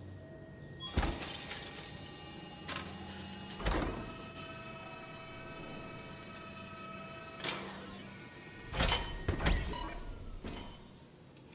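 A robotic arm whirs and hums as it moves.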